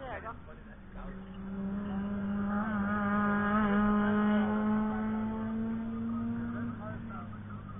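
A racing car's engine roars by at speed, growing louder and then fading.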